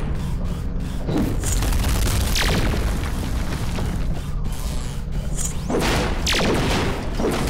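A robot vehicle's engine rumbles steadily.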